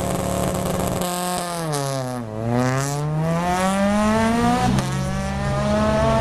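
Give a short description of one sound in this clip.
A rally car accelerates away, its engine climbing through gear changes.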